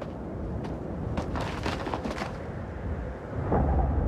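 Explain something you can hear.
A body thuds onto stony ground.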